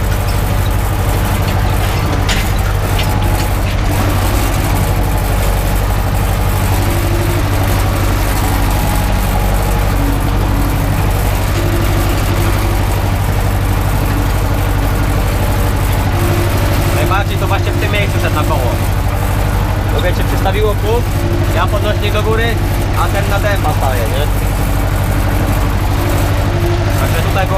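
A harrow rattles over the tilled soil.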